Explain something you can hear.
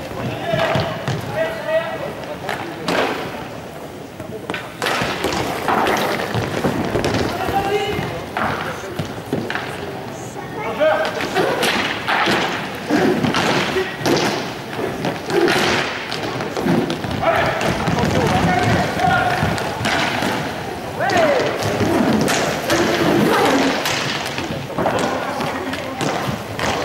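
Young players shout and call out across an echoing hall.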